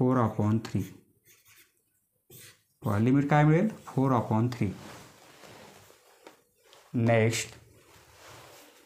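A man explains calmly into a close microphone.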